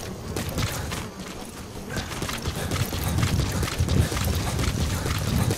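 Footsteps run quickly over sand and gravel.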